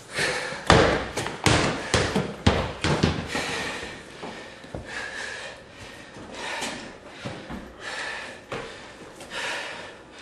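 Rubber exercise balls thump and roll on a floor mat.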